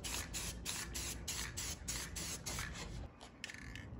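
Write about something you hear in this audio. A spray can hisses in short, quick bursts.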